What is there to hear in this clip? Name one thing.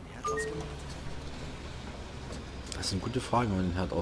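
Bus doors hiss open.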